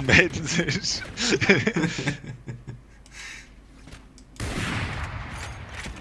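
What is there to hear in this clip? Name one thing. A young man talks and laughs excitedly into a microphone.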